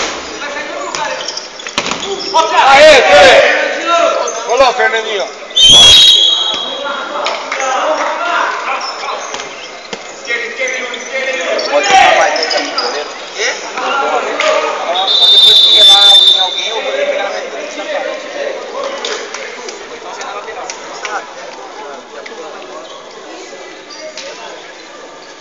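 Spectators and players shout and cheer in a large echoing hall.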